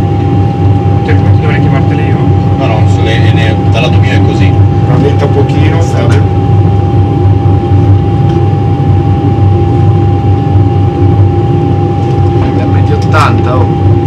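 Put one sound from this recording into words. A man speaks briefly over a headset intercom.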